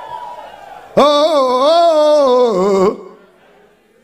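A man shouts loud, drawn-out cries into a microphone.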